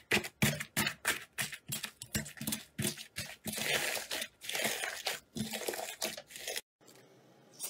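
Hands squish and crunch a beaded slime with crackling pops.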